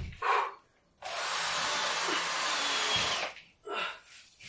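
A power screwdriver whirs, driving screws into a board overhead.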